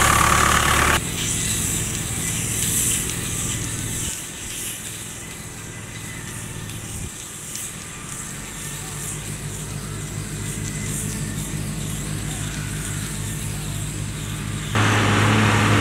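Distant tractor engines drone across an open field.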